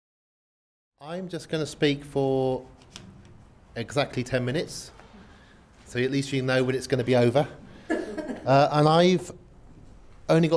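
A man lectures to an audience through a microphone in a large room.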